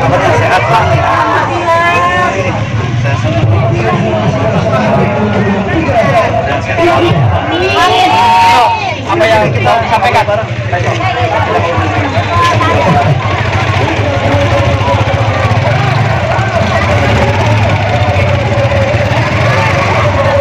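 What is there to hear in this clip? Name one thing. A crowd of men and women chatter outdoors close by.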